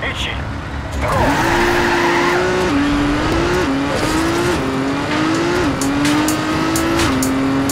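A race car engine roars and revs up through the gears.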